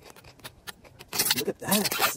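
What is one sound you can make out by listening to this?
Fingers press and rustle in soil inside a glass jar.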